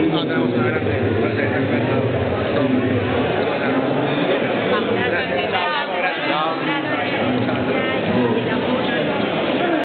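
A crowd chatters all around in a busy, echoing room.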